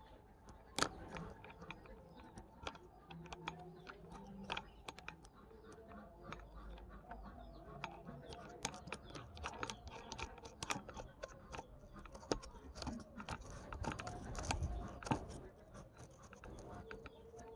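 Fingers scrape and click against a metal nut on an abrasive disc.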